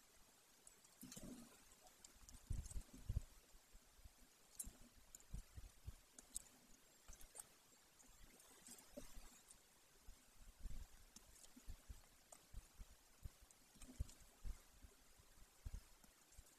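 An eagle tears at prey in a nest, making soft thuds and rustles.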